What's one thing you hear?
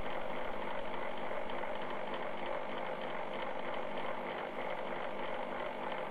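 A lathe motor hums as it spins.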